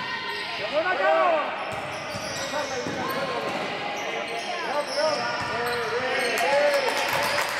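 Sneakers squeak sharply on a hall floor, echoing.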